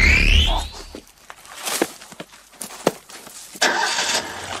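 Leafy branches rustle as a man pushes through bushes.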